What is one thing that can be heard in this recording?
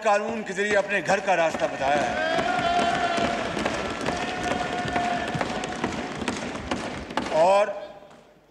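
A crowd applauds and cheers loudly.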